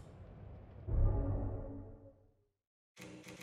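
A metal case creaks open with a low thud.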